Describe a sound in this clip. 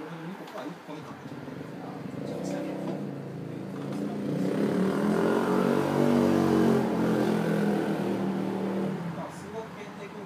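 A man close by talks loudly and animatedly.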